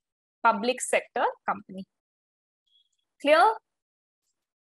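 A young woman speaks calmly into a close microphone, in short phrases.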